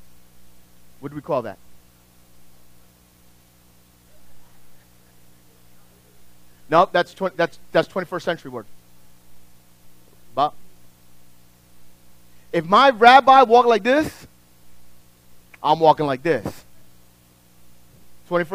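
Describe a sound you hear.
A middle-aged man speaks with animation in short bursts, in a room with some echo.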